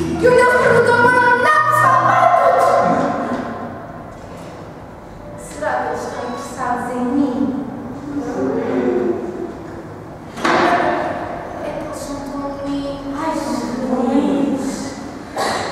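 A group of young women sing together in a hall that echoes.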